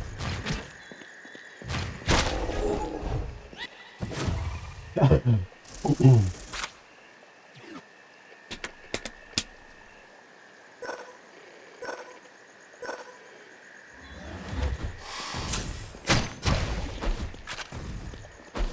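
Sword slashes and heavy hits land in quick bursts of fighting.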